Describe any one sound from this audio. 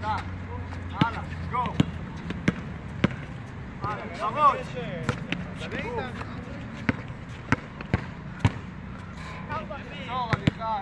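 A basketball bounces sharply on a hard outdoor court.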